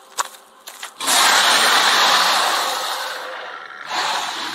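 A huge beast lets out a loud, rumbling roar that slowly fades.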